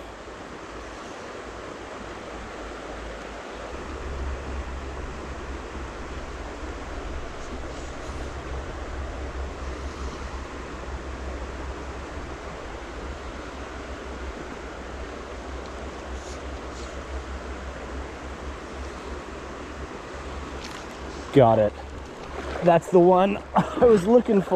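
Water flows and ripples steadily over a shallow stream bed.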